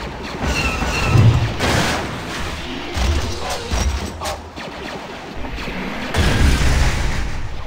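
A metal walker machine crashes and breaks apart with a loud clatter.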